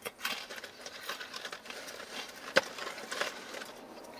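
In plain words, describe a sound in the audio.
A cardboard food box rustles.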